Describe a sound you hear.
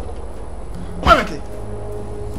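A body thuds onto a metal walkway.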